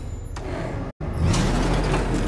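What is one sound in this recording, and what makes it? A vehicle engine revs up loudly.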